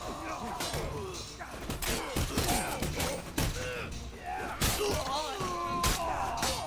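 A crowd of men shouts and brawls.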